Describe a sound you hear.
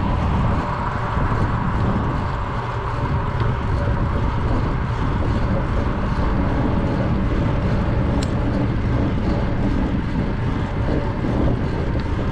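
Tyres roll steadily on pavement.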